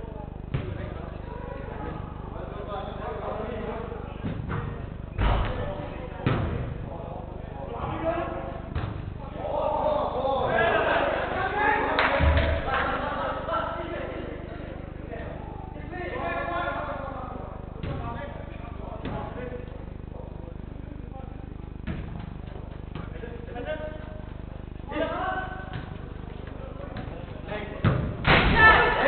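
Men shout and call to each other across a large echoing hall.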